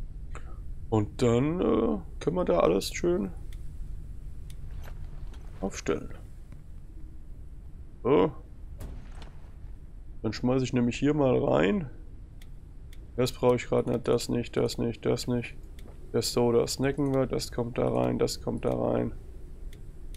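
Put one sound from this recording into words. A young man talks calmly into a close microphone, in short bursts.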